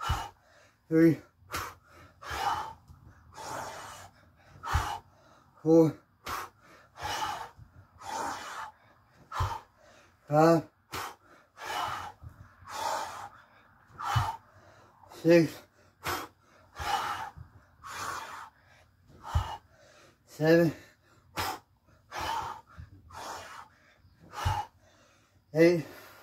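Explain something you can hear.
A man grunts with effort.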